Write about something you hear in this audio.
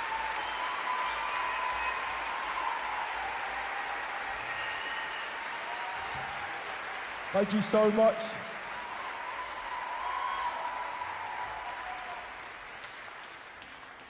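Audience members cheer and whistle.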